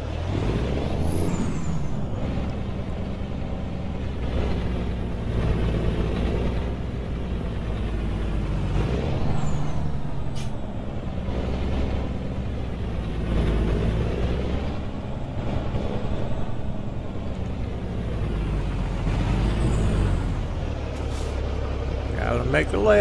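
A truck's diesel engine rumbles steadily at low speed.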